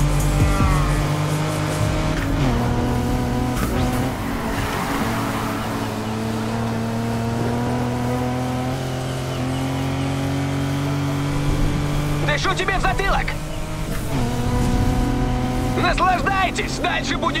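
A car engine roars at high speed, shifting gears up and down.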